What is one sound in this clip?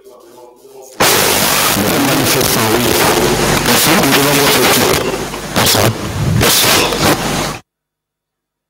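A man speaks loudly into a microphone, his voice harsh and distorted.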